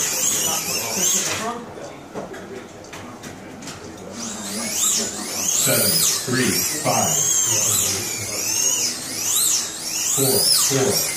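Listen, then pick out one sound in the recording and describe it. Small electric slot cars whine as they speed up and slow down around a track.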